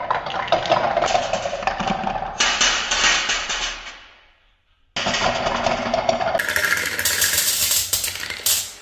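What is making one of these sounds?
Marbles clink as they drop into a metal tray.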